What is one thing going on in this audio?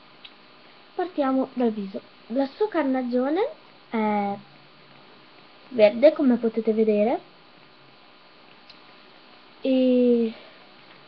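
A young girl talks animatedly close to the microphone.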